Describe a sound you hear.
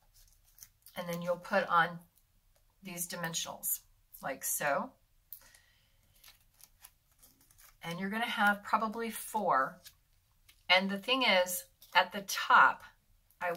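An older woman talks calmly and closely into a microphone.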